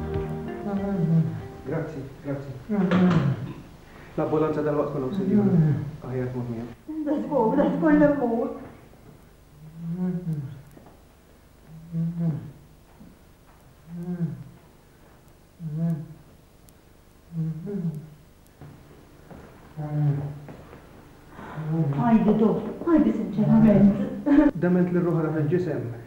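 A middle-aged man speaks urgently, close by.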